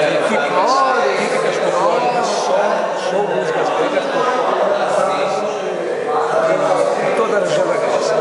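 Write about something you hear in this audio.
An older man talks up close in a conversational tone.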